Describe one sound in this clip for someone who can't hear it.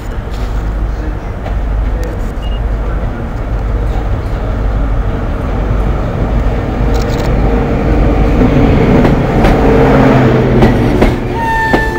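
A diesel train engine rumbles as a train approaches and roars past close by.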